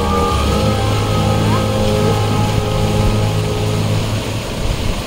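A crowd of men and women sings together.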